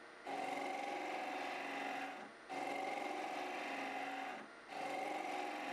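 A cutting tool scrapes against a spinning lathe piece in repeated bursts, with a whining tone.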